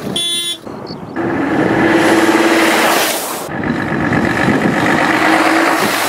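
A truck drives past close by with a loud engine roar.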